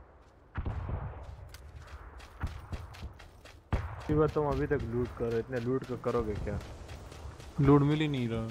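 Footsteps run quickly through grass.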